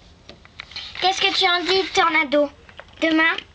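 A young child shouts and squeals loudly close by.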